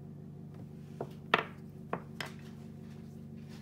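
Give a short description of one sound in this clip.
Wooden pieces knock down onto a table.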